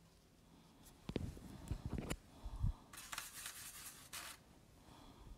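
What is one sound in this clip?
A hand rubs and bumps close by with loud thumps.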